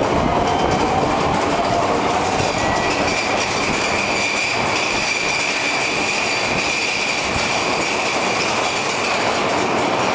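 A train rushes past close by with a loud, steady roar.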